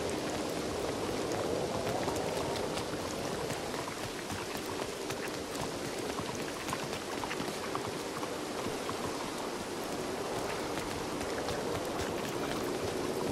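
Footsteps splash quickly on wet stone.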